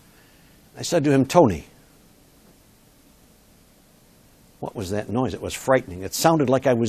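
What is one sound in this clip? A middle-aged man lectures with animation, heard up close through a microphone.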